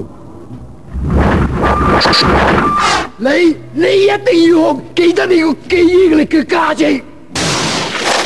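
A young man speaks with force.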